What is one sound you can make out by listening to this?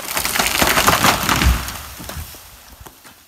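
A large tree crashes to the ground with a heavy thud.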